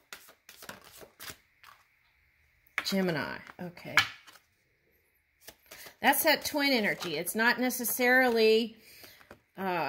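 A card is laid down on a table.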